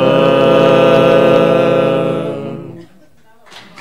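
A group of men sing a long held chord together through microphones, then fade out.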